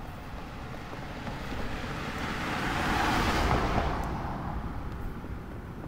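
A car drives past on the road, rising and then fading.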